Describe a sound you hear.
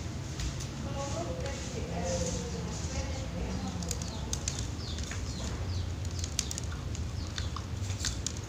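A small bird chirps and squeaks in short, high calls close by.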